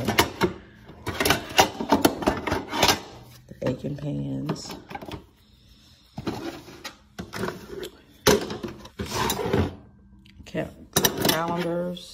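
Small metal pans clink and rattle against plastic.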